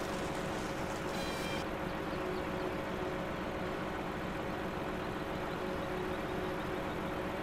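A heavy diesel engine rumbles and drones steadily.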